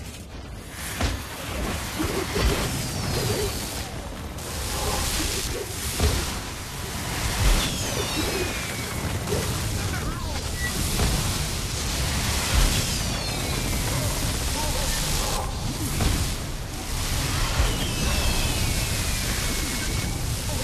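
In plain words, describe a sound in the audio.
Magic spells crackle and burst with heavy booming impacts during a fight.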